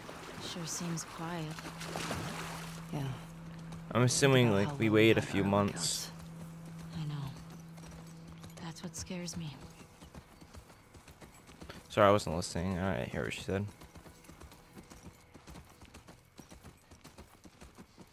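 A horse's hooves thud softly on the ground at a walk.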